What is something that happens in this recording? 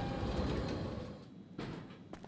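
Elevator doors slide open with a low rumble.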